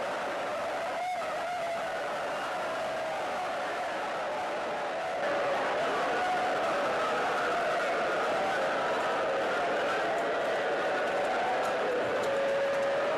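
Many men murmur and shout in a crowd.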